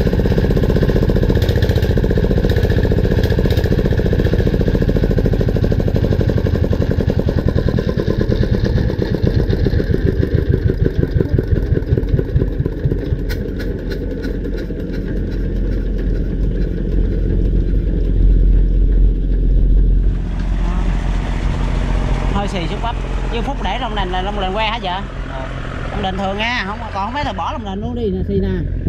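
A diesel engine runs loudly with a steady chugging thump.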